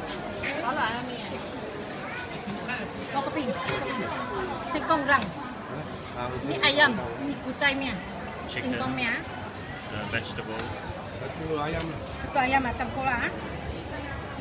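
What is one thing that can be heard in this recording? A woman talks nearby.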